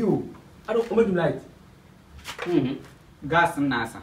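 A young man answers with a laugh in his voice.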